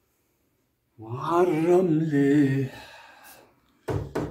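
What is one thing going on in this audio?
A young man speaks close by, with animation.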